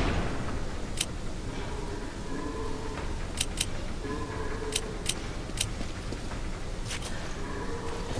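Short sharp menu clicks tick now and then.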